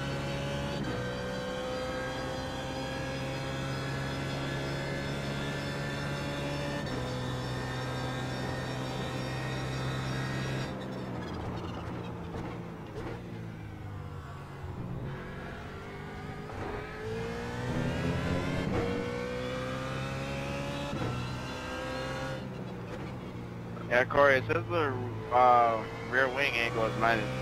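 A racing car engine roars at high revs, dropping sharply as the gears shift down and rising again as it accelerates.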